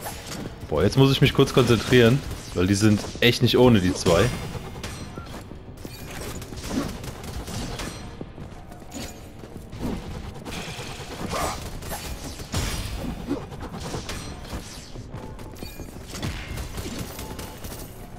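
Weapons clash and blast in a fast fight.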